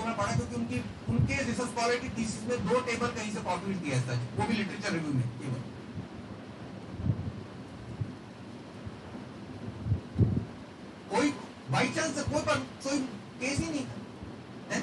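A man speaks calmly to an audience in a room with some echo.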